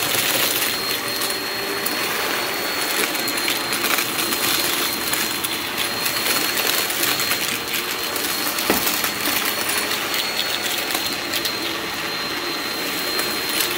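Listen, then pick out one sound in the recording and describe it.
Small bits of debris rattle and click as a vacuum cleaner sucks them up.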